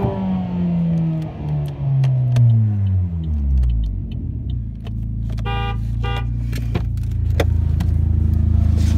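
A car engine winds down from a high rev and then idles steadily.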